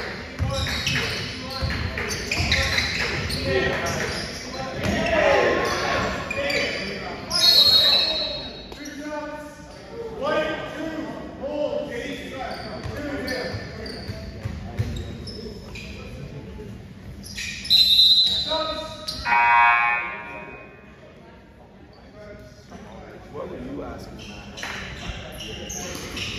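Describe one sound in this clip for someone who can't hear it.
Spectators cheer and shout nearby.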